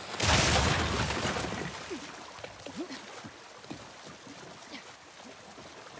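Water sloshes as a swimmer strokes through it.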